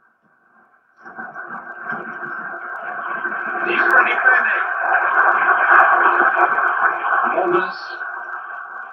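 A stadium crowd roars loudly through a television speaker, swelling and then easing.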